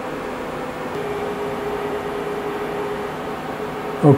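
A machine motor whines steadily for a moment.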